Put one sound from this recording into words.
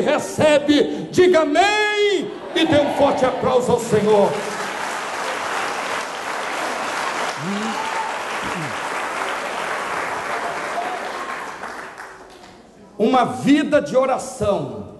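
A man preaches loudly and with passion through a microphone in an echoing hall.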